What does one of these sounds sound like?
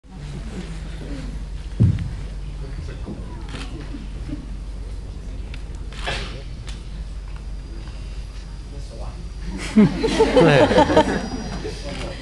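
Children and young people chatter on a stage.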